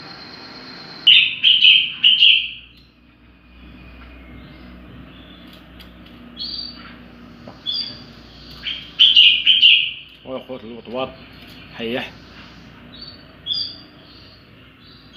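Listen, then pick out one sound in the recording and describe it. Small birds chirp and tweet loudly nearby.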